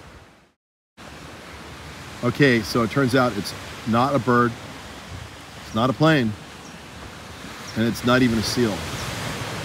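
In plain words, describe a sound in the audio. Small waves lap gently on the water.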